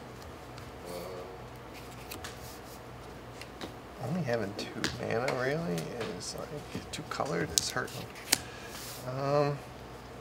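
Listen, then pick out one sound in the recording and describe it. Playing cards tap and slide softly on a table mat.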